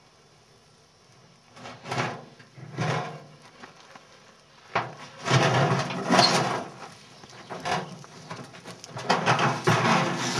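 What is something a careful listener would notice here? A snake slithers over dry leaves and dirt.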